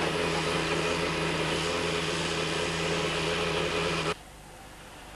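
A steam locomotive engine hums steadily.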